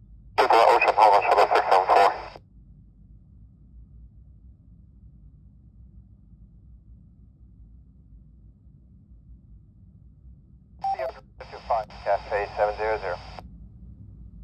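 Brief voice transmissions come through a handheld radio's small speaker.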